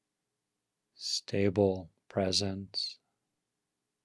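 An older man speaks calmly and briefly into a close microphone.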